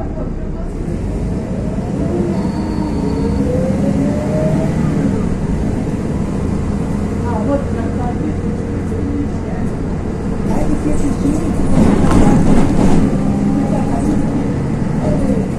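A car engine hums from inside a moving vehicle.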